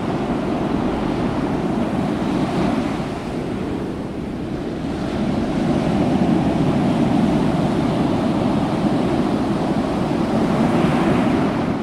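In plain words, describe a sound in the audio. Waves crash and roar against rocks.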